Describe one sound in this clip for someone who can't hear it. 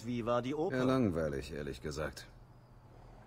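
A man answers calmly.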